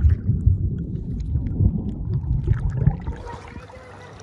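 Water churns and bubbles underwater.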